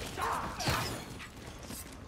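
A bow string twangs as an arrow is shot.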